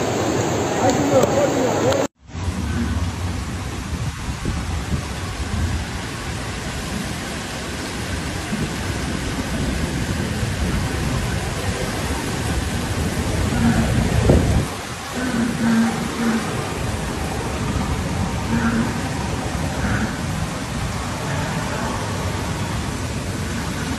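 Floodwater rushes and churns loudly along a street.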